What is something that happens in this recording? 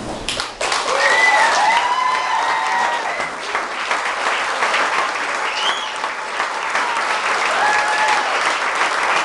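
Members of an audience whistle shrilly.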